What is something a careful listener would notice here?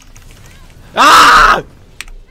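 A man shouts loudly in excitement into a close microphone.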